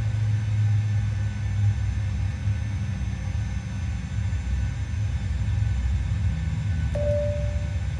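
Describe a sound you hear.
Switches click.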